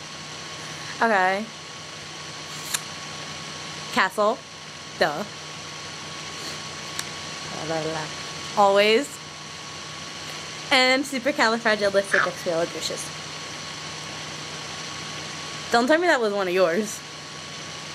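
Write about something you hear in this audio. A young woman talks with animation over an online call.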